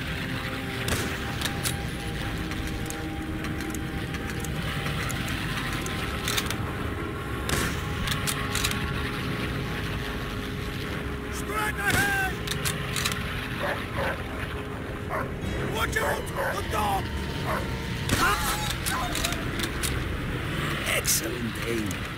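Rifle shots crack sharply now and then.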